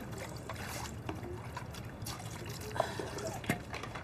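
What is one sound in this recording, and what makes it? Water splashes softly in a basin.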